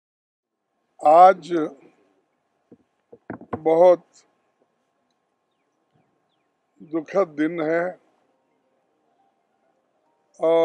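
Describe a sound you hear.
An elderly man reads out a statement slowly into a microphone, with long pauses.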